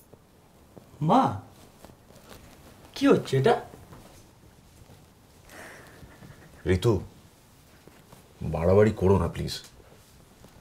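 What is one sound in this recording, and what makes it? A woman sobs and sniffles close by.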